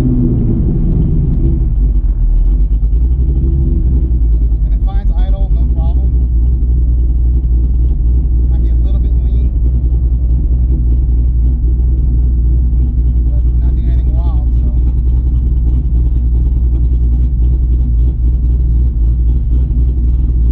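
A car engine hums with a steady low drone inside the cabin.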